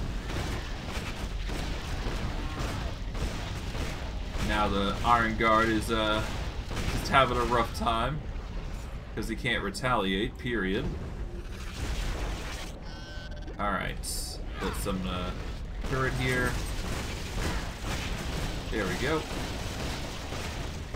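Magic blasts crackle and burst in a fight.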